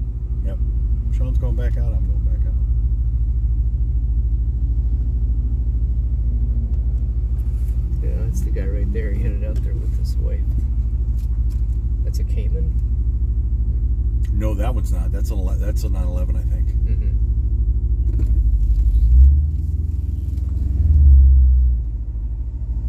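A sports car engine rumbles as the car rolls slowly, heard from inside the cabin.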